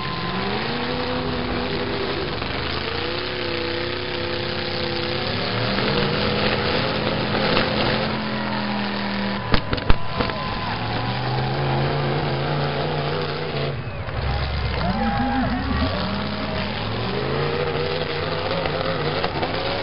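Car engines rev and roar loudly outdoors.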